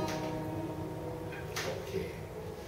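An acoustic guitar chord rings and fades.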